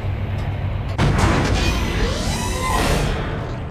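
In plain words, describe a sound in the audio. A heavy metal door slides open with a loud rush.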